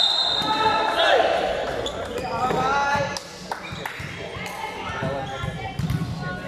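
A volleyball is hit with sharp thuds.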